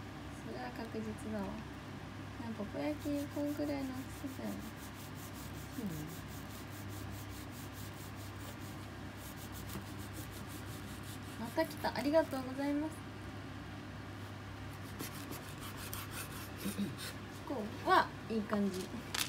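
A knife cuts through a soft cake and taps on a wooden board.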